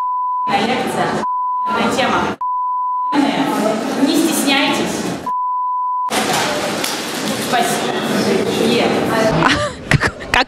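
A young woman speaks with animation into a microphone close by.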